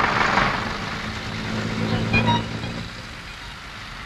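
A bus engine rumbles as the bus drives past.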